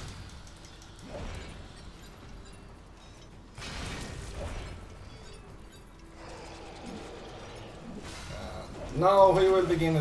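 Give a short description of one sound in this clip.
Ice shatters with a loud crash.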